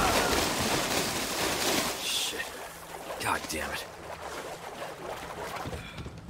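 Water sloshes as someone wades through it.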